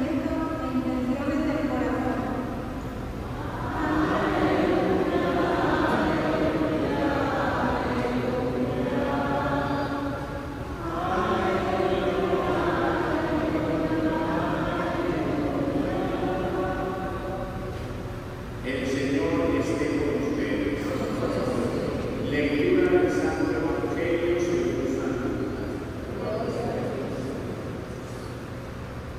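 A man speaks slowly and steadily through a microphone in a large echoing hall.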